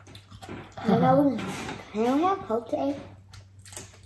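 A woman chews food noisily.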